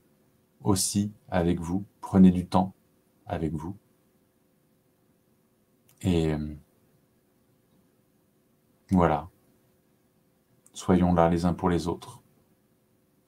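A man speaks calmly and haltingly into a close microphone, with long pauses.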